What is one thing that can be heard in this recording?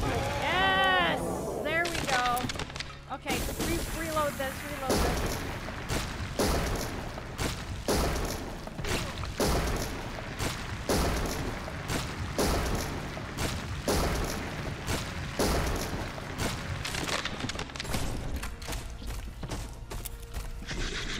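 Guns fire in rapid bursts in a video game.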